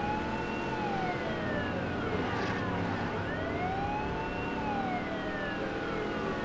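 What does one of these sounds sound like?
A car engine roars at high speed.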